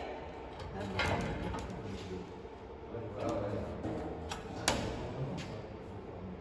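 Metal parts clank and knock together.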